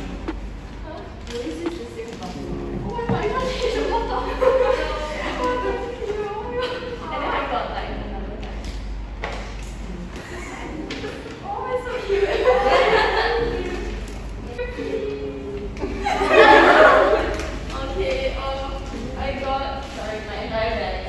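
Young women chat and laugh together nearby.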